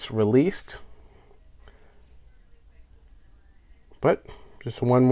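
A metal watch bracelet clinks softly as it is handled.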